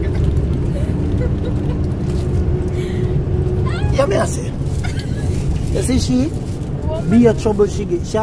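A vehicle engine rumbles steadily inside a moving van.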